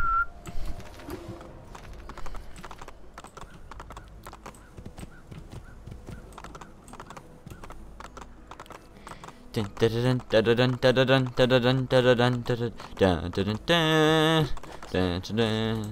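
A horse gallops with rapid hoofbeats on a stone path.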